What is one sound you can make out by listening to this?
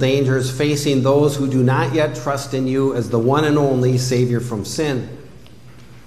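A man sings through a microphone in an echoing hall.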